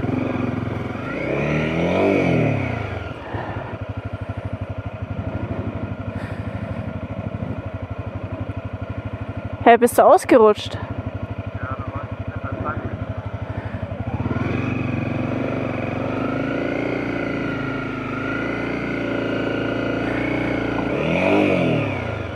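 A motorcycle engine putters steadily at low speed, rising in pitch now and then.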